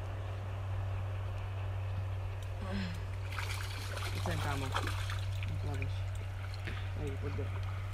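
A landing net swishes through water.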